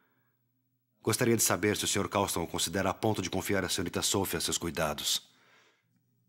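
A young man reads aloud nearby.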